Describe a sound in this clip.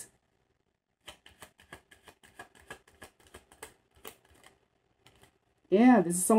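Playing cards riffle and flick as they are shuffled.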